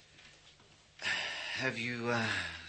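A middle-aged man speaks in a low, calm voice.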